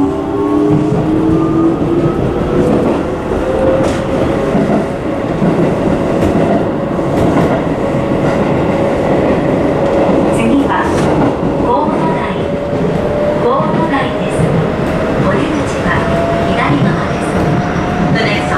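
A train rumbles and clatters steadily along the track.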